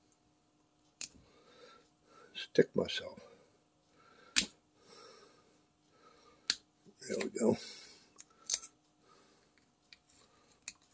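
A metal pick clicks and scrapes against a metal part.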